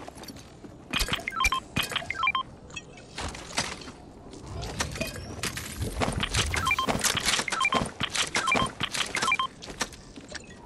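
Short bright chimes ring as items are picked up.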